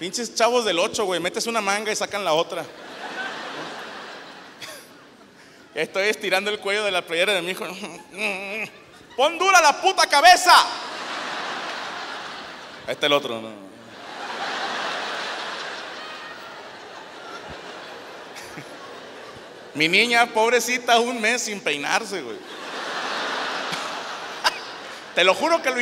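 A man talks with animation into a microphone in a large echoing hall.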